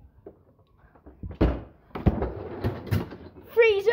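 A freezer drawer slides open.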